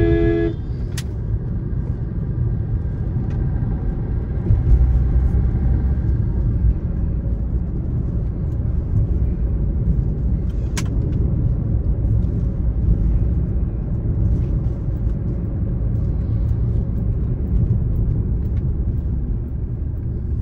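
Tyres roll and rumble on the road.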